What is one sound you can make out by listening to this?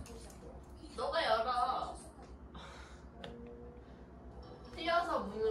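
A small dog whines.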